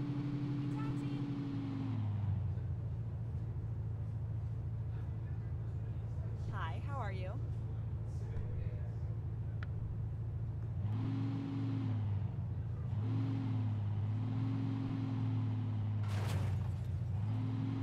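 A car engine hums steadily at low revs.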